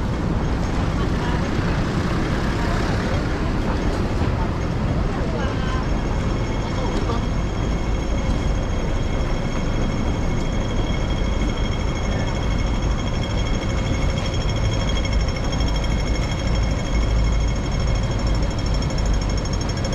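Traffic rumbles steadily nearby outdoors.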